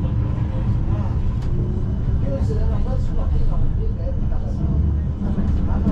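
A tram rumbles along its rails nearby and moves away.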